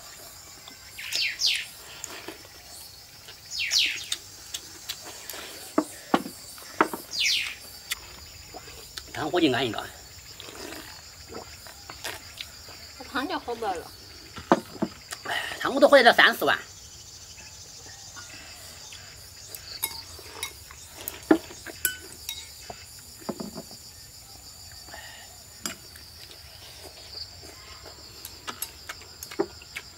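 Chopsticks click against bowls.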